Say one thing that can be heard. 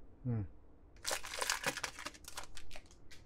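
A foil wrapper crinkles and rustles in hands.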